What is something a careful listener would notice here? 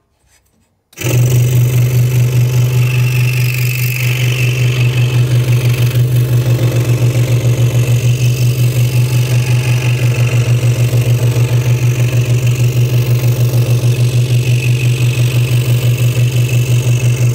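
A scroll saw starts up and runs with a steady, rapid buzzing hum.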